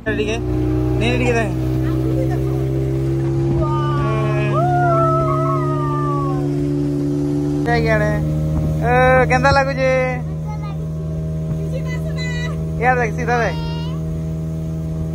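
A young girl talks and giggles excitedly close by.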